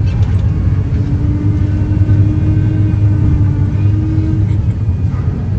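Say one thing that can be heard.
Hydraulics whine steadily as a loader arm lifts.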